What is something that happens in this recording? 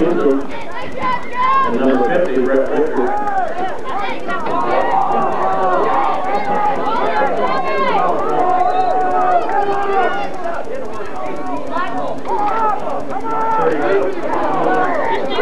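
A crowd of young boys and adults chatter and cheer close by outdoors.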